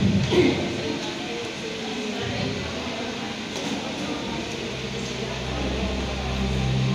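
A young man and a young woman talk quietly in a large echoing hall.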